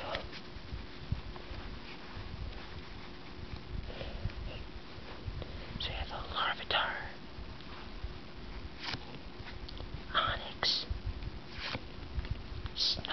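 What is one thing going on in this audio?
Playing cards rustle and slide against each other up close.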